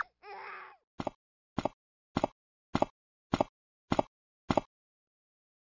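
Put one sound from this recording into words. Small footsteps patter at an even pace.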